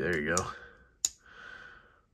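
A folding knife blade snaps shut with a sharp click.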